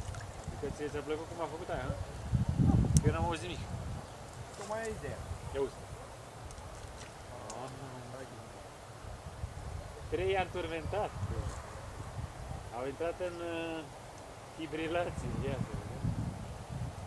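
A man speaks casually close by.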